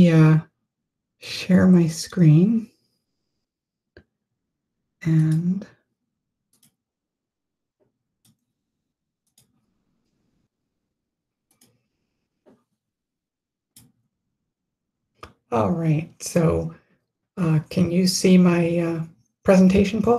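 A woman speaks over an online call, pausing now and then.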